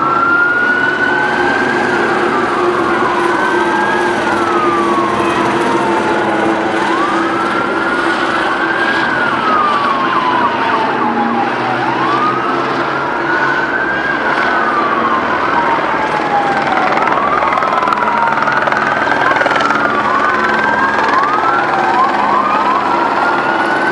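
Several sirens wail, rising and falling, from emergency vehicles in the street below.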